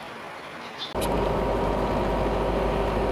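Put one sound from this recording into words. A car drives along a wet road.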